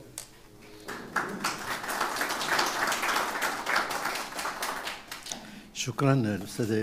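An audience claps in applause.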